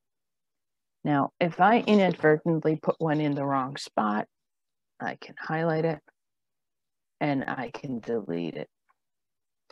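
A woman speaks calmly and clearly into a microphone, in short bursts with pauses.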